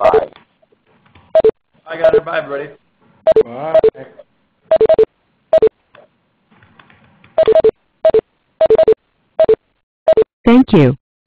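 A short two-note chat alert chimes again and again.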